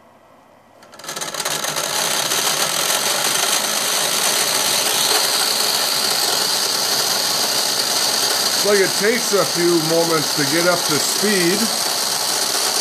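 A pair of spinning wheels whirs loudly and steadily.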